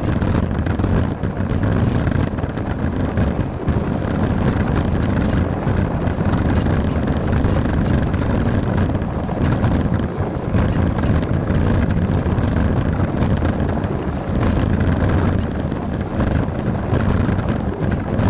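A bicycle tyre rolls and rumbles over a paved path.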